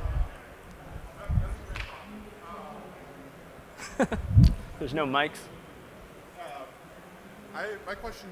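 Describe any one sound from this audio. A man speaks in a large echoing hall.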